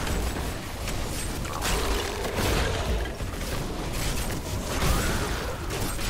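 Fiery spells explode and roar in rapid bursts.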